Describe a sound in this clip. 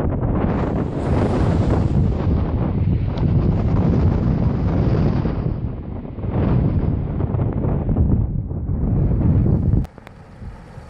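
Strong wind roars and buffets the microphone.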